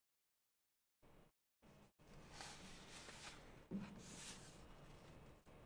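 Paper pages rustle as a book is leafed through.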